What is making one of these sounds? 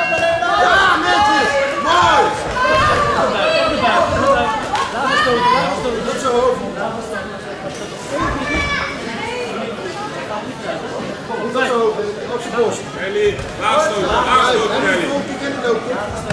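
Gloves thud against each other as children box.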